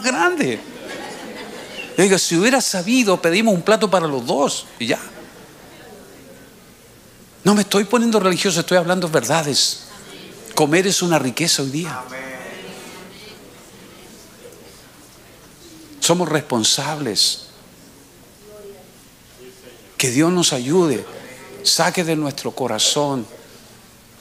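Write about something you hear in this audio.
An elderly man speaks earnestly into a microphone, pausing between phrases.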